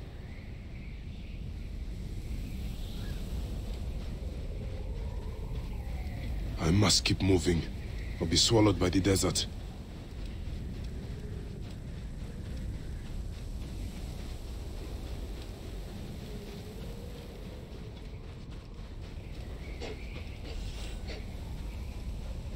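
Footsteps run across soft sand.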